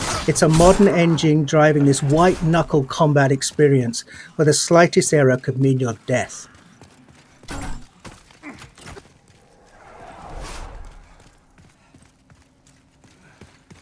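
Armoured footsteps run over stone.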